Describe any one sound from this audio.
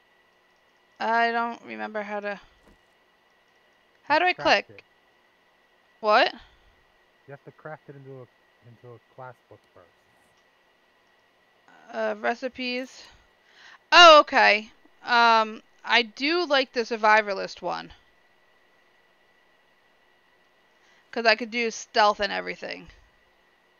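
A woman talks with animation into a close microphone, in short bursts.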